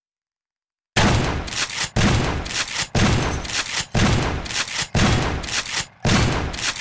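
A shotgun fires loud blasts, about once a second.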